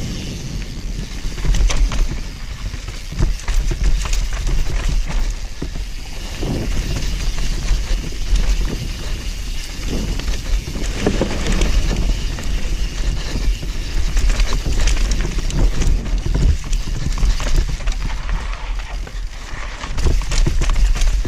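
Wind rushes loudly past a moving microphone.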